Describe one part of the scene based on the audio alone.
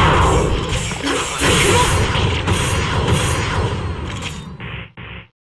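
Rapid blows and fiery blasts crash in quick succession in a fighting game.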